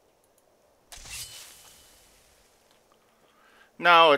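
A lightning spell crackles and fizzes.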